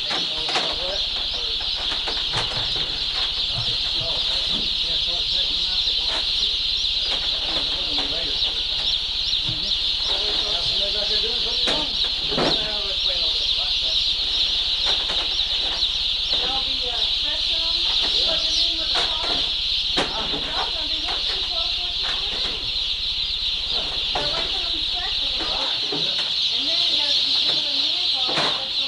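A large crowd of chicks cheeps loudly and constantly.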